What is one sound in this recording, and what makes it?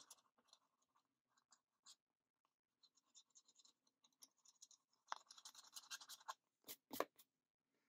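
A sticker peels softly off a sheet.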